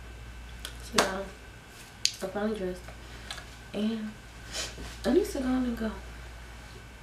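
A young woman speaks casually close by.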